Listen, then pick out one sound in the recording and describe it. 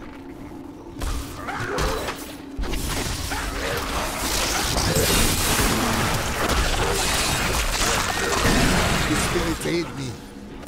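Game spells crackle and explode in a fast fight.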